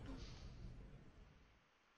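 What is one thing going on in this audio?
A young woman groans softly close to a microphone.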